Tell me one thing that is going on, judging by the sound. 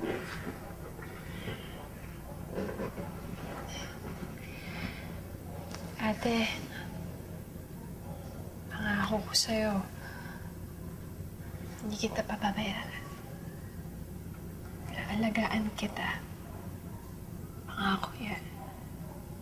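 A young woman speaks softly and quietly nearby.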